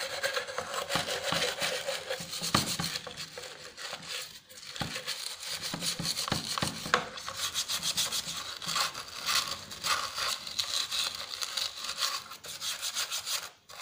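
Steel wool scrubs rapidly back and forth against metal with a harsh scratching rasp.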